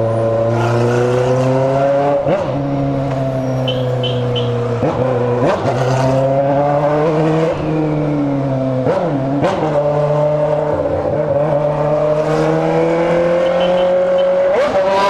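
A motorcycle engine hums close by, rising and dropping in pitch as it shifts gears.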